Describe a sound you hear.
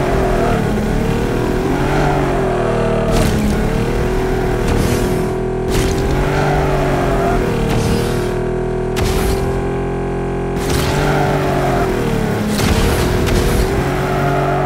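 A racing car engine roars and whines at high speed.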